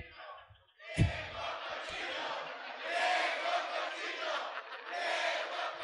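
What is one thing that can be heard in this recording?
A large audience laughs and claps.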